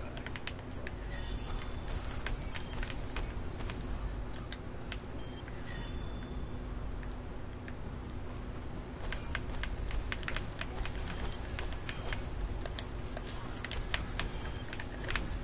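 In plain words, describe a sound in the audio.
Gunfire from a game weapon rattles in rapid bursts.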